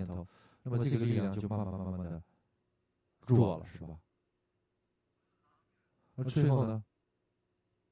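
An elderly man speaks to a group in short phrases, with pauses.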